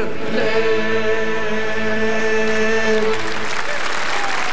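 Fiddles play a sustained final chord.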